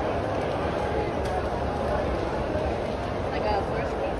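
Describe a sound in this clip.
A man talks on a phone nearby.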